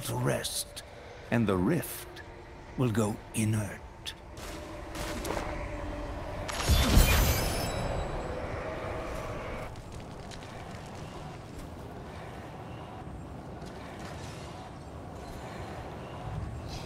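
Magical spell effects whoosh and boom.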